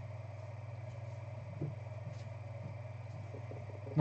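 A plastic card case clicks onto a table.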